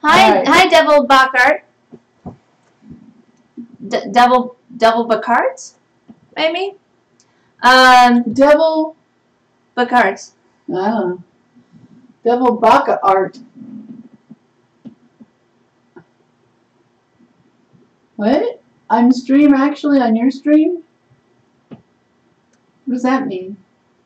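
A young woman talks calmly into a nearby microphone, pausing often.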